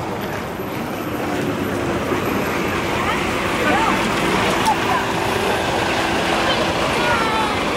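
Traffic rumbles by on a nearby road.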